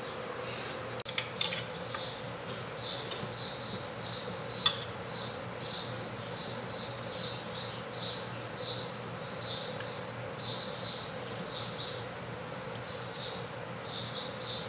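Pasta rustles and scrapes against a glass bowl.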